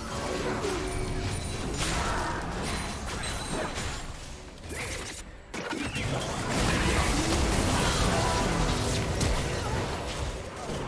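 Game spell effects whoosh, crackle and blast as characters fight.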